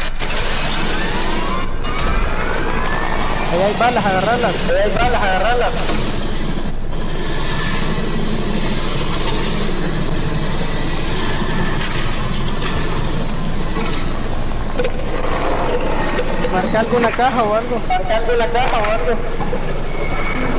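A helicopter's rotor whirs steadily as it lifts off and flies.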